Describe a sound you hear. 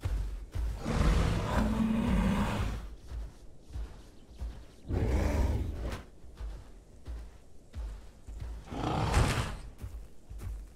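A large creature roars loudly a few times.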